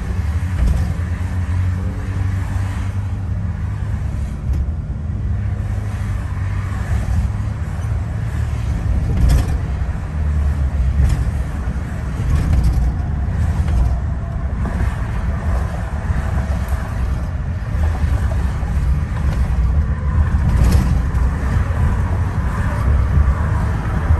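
Other cars rush past close by.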